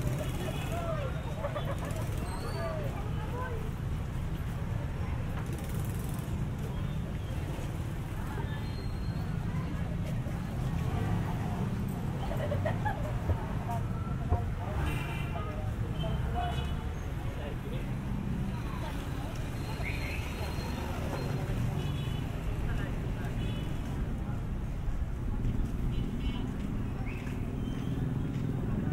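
Voices of a crowd chatter nearby.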